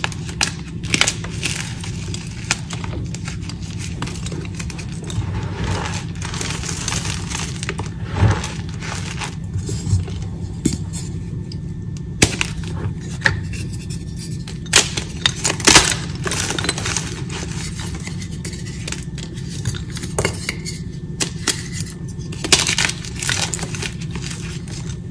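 Chalky blocks crumble and crunch between fingers, close up.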